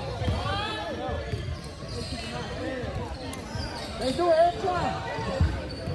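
Young players and spectators shout and call out.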